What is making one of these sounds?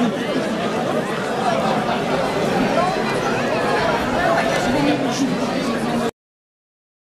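A crowd chatters and murmurs outdoors.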